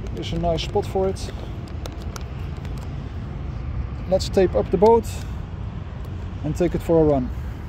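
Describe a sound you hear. Plastic parts click and rattle as hands handle them.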